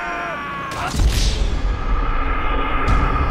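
A body slams hard onto a road with a heavy thud.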